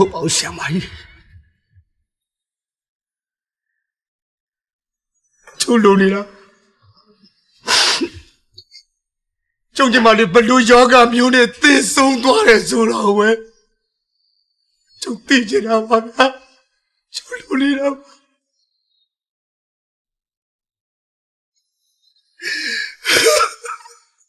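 A man sobs and cries out in anguish, close by.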